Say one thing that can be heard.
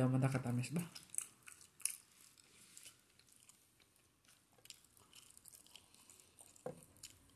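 A young woman chews food with soft, wet smacking sounds.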